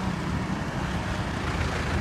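A bus engine rumbles close by.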